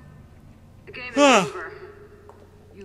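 A young man shouts loudly into a close microphone.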